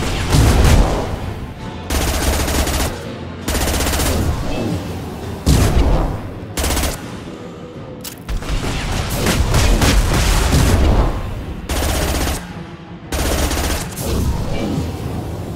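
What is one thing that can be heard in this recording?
Gunshots and energy blasts crack in loud, repeated bursts.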